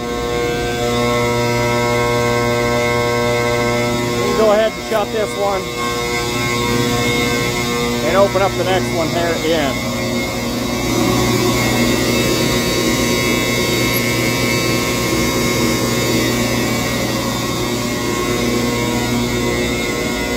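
A large diesel engine idles with a steady low hum nearby.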